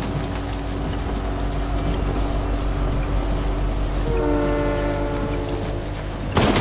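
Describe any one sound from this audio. A train rumbles along the tracks nearby.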